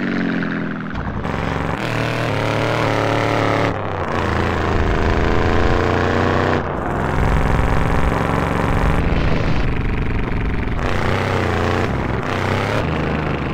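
A car engine revs and roars while driving on a dirt road.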